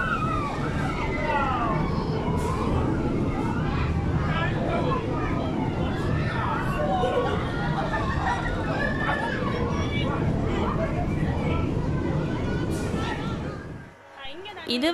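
A crowd of adults and children chatter and call out outdoors.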